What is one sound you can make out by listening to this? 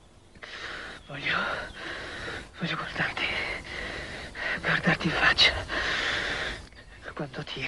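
A man speaks nearby in a weak, trembling voice.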